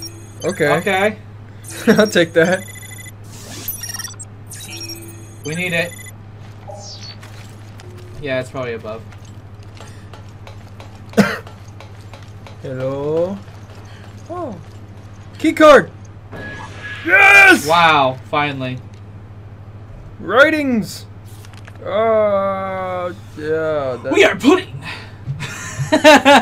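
A second young man talks and laughs close to a microphone.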